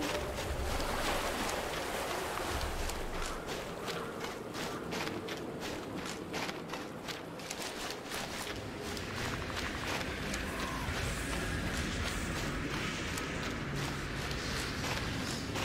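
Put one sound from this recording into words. Footsteps patter steadily on soft ground.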